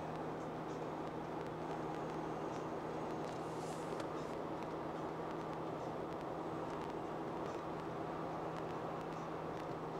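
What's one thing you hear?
A car's engine and tyres on asphalt hum steadily at highway speed, heard from inside the cabin.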